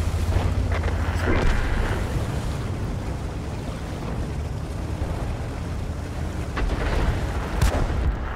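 Tank tracks splash through shallow water.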